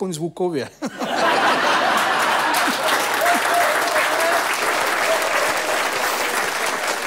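An audience laughs loudly.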